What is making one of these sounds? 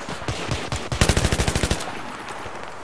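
A rifle fires a rapid burst.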